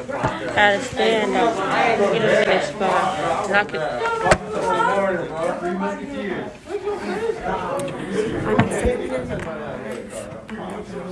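A young woman talks close up.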